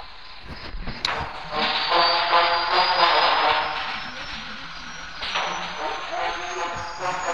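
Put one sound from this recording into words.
A helicopter engine starts up with a rising whine and a heavy rushing roar.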